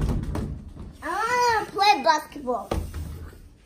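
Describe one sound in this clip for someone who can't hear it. A young girl squeals and shrieks excitedly.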